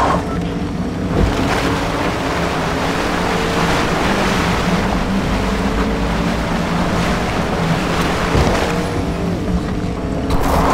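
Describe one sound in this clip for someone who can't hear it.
A vehicle splashes and churns through water.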